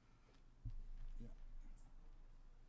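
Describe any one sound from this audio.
A man speaks quietly into a microphone.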